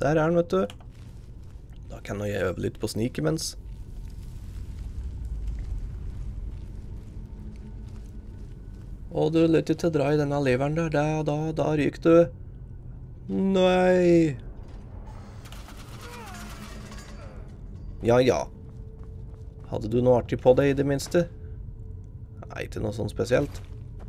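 A man talks casually and with animation into a close microphone.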